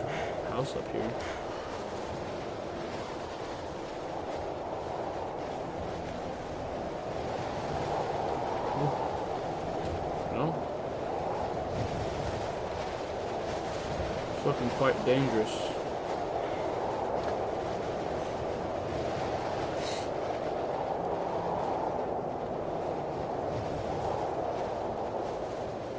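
Wind howls steadily through trees in a snowstorm.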